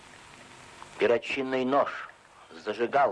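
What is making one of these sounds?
A middle-aged man speaks slowly and firmly.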